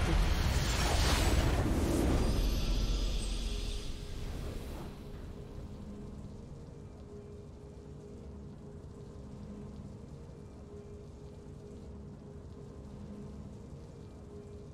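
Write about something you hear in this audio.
A game's victory fanfare swells and fades.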